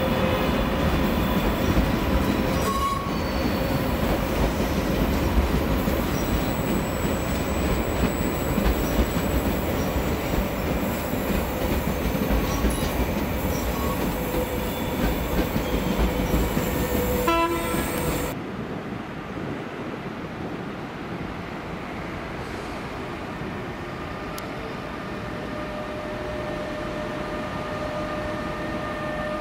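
Trains rumble along the tracks nearby.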